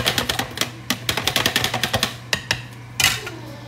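A whisk clinks rapidly against a plastic jug.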